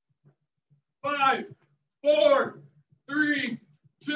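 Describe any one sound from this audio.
A man speaks loudly in short bursts.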